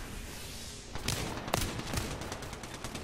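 Gunshots crack sharply a few times.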